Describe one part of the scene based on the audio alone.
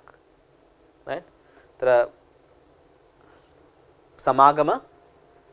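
A man speaks in short bursts close to a microphone.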